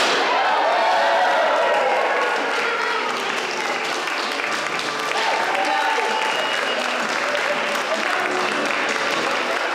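An audience cheers and applauds loudly in a large room.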